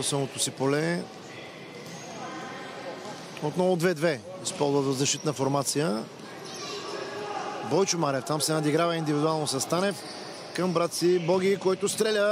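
A ball is kicked across a hard indoor court.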